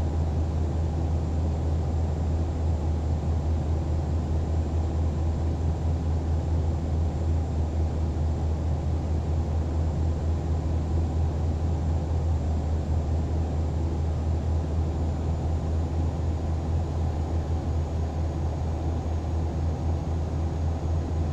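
Tyres roll and hum on the road.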